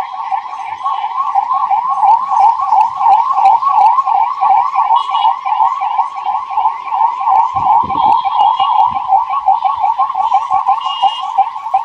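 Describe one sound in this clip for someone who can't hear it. Ambulance sirens wail rapidly and steadily, up close.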